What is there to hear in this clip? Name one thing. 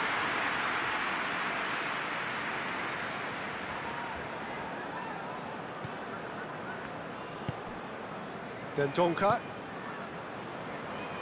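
A large stadium crowd roars steadily, slowly growing quieter.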